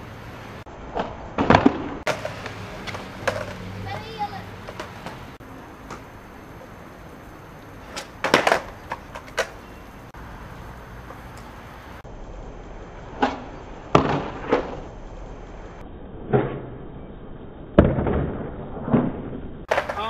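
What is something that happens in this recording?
A skateboard deck clacks and slaps on concrete.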